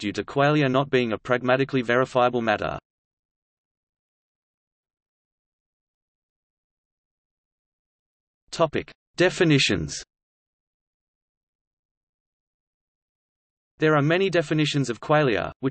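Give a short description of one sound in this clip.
A man speaks calmly, with long pauses.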